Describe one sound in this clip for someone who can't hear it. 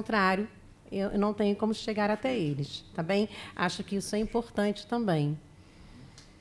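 A woman speaks with emotion into a microphone, close by.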